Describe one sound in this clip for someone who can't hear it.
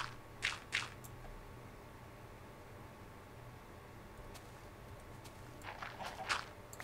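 Soft gritty crunches sound as blocks of earth are placed.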